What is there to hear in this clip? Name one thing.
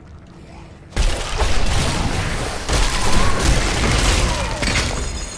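Weapons strike and slash in a fierce fight.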